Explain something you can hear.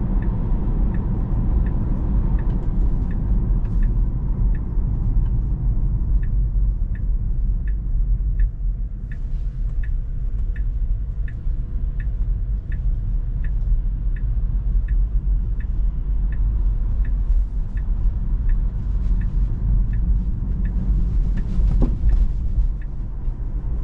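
A car's turn signal ticks at an even pace.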